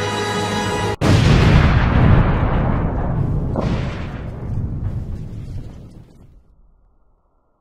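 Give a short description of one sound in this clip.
A loud explosion booms and slowly fades away.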